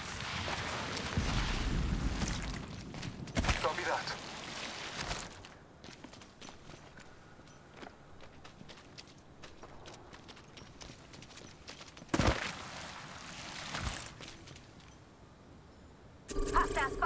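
Footsteps rustle quickly through grass and over dirt.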